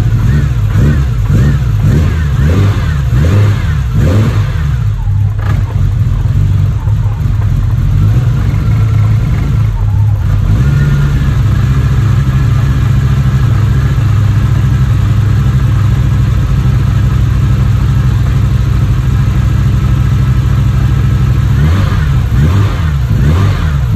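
An engine idles with a loud, steady rumble.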